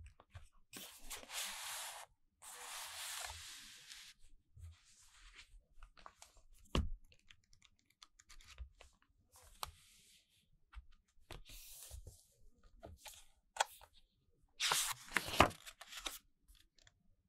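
Thick pages flip and rustle.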